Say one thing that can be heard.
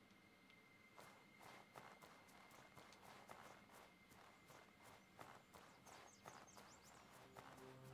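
Footsteps crunch softly through snow.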